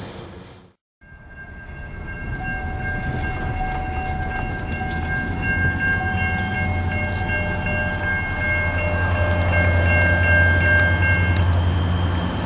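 A railroad crossing bell rings steadily.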